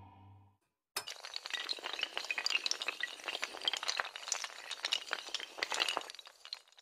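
Many small tiles clatter rapidly as they topple over in a chain.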